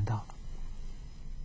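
An elderly man speaks a few calm words close to a microphone.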